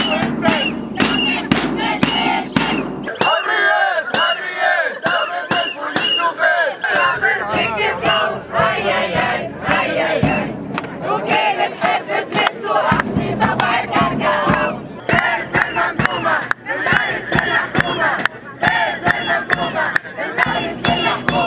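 A drum is beaten in a steady rhythm close by.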